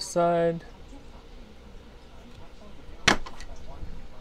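Bolt cutters snap through metal with a sharp click.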